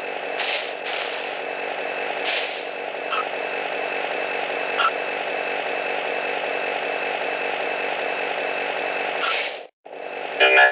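A vacuum cleaner hums steadily.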